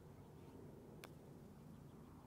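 A putter taps a golf ball.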